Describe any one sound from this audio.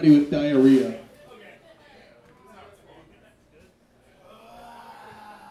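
An electric guitar plays heavy riffs.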